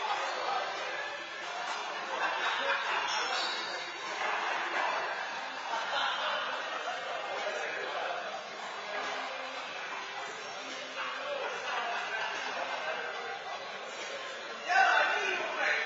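A handball smacks against a wall in an echoing indoor court.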